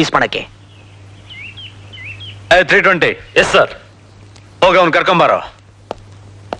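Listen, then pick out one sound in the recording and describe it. A man speaks firmly and loudly nearby.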